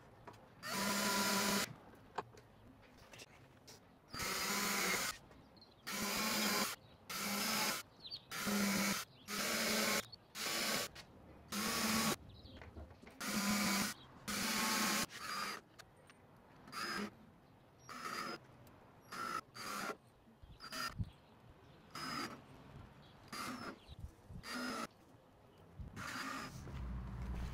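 A cordless drill whirs in short bursts, driving screws into wood.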